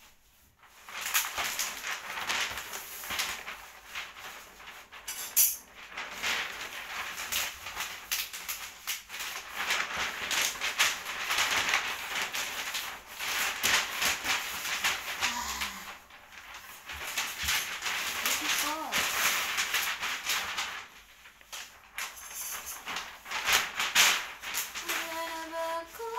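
Wrapping paper crinkles and rustles as it is unrolled and folded.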